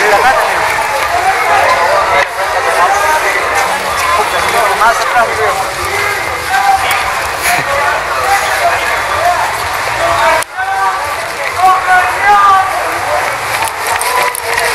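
A crowd of people talks and shouts outdoors in a busy street.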